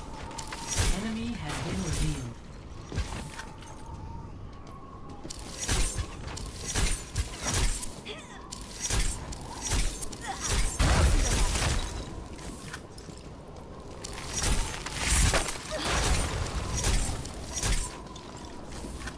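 A game blaster fires bursts of shots.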